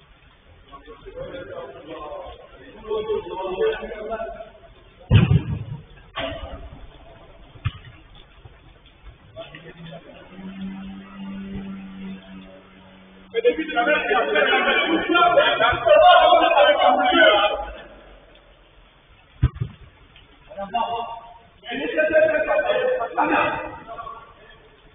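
Men shout to each other.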